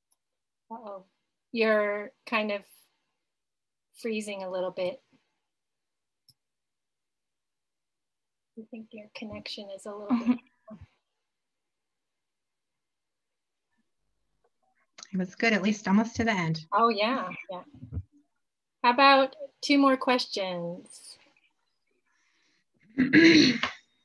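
A woman talks calmly over an online call.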